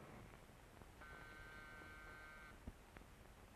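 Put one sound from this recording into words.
A doorbell rings with a steady chime.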